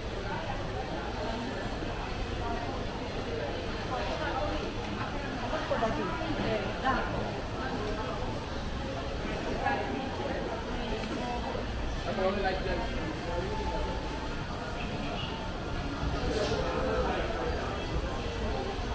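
Men and women passing by chat quietly nearby.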